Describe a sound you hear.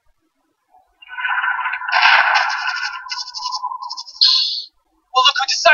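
A video game creature screeches loudly through a small speaker.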